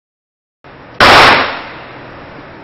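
A handgun fires a single loud shot that echoes and fades.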